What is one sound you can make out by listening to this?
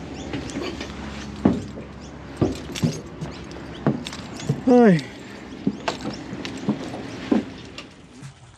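Knocks and clunks sound on a boat's deck.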